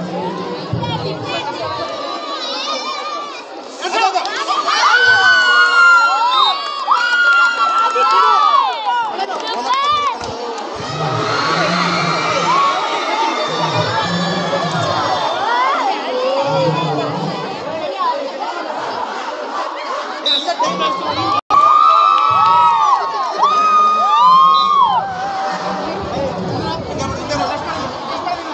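A large crowd of young people cheers and shouts loudly outdoors.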